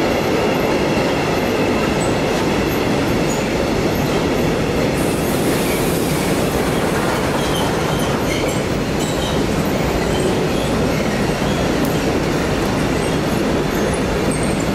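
A long freight train rumbles steadily past on the rails.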